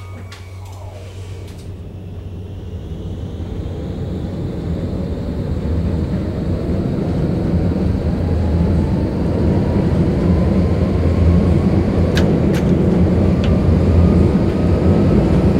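Tram wheels rumble and clatter on the rails, growing louder.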